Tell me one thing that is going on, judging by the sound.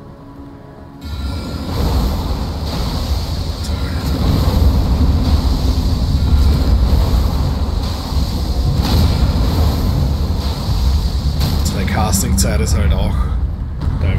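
Magic spells whoosh and hum with a deep, steady rumble.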